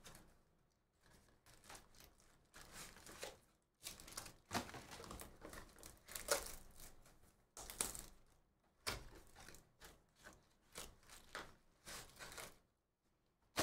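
Cardboard boxes and plastic wrappers rustle and crinkle as they are handled.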